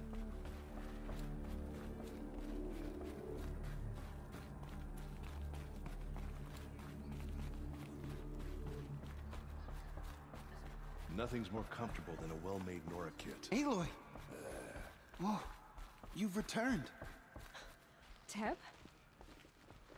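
Footsteps tread steadily on a hollow wooden floor.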